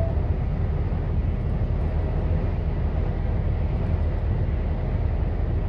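A vehicle rumbles steadily along a paved road.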